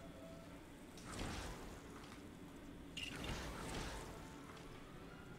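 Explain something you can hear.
A magical burst crackles and shimmers.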